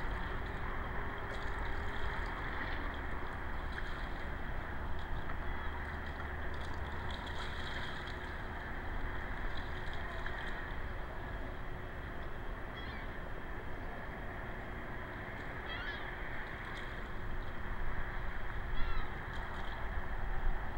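Water laps gently outdoors.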